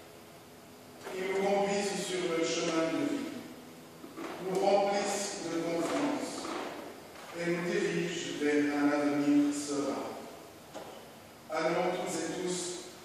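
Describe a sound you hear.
A pipe organ plays slow chords that ring out in a large echoing hall.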